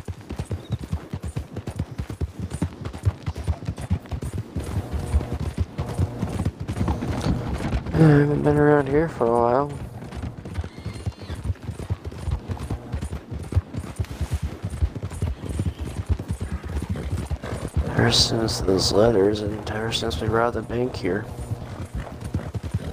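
Horses gallop with rapid, heavy hoofbeats.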